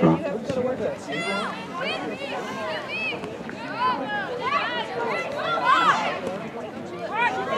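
Spectators cheer and shout from the sidelines.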